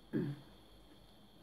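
A young woman lets out a short startled exclamation close by.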